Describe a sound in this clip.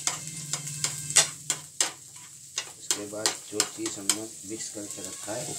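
A metal spatula scrapes and clatters against a frying pan.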